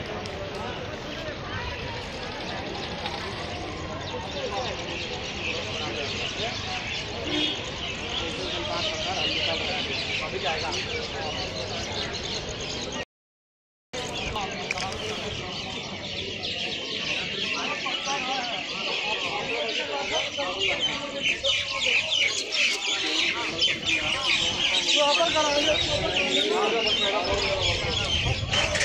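A crowd of people chatters outdoors at a distance.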